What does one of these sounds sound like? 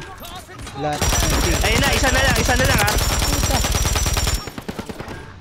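A rifle fires in rapid bursts.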